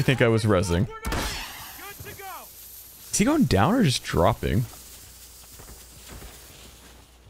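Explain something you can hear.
A smoke grenade bursts and hisses.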